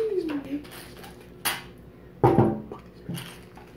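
A glass vase knocks against a hard surface.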